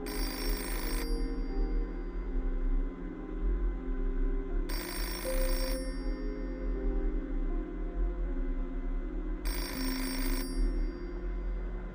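An arcade machine plays short electronic jingles.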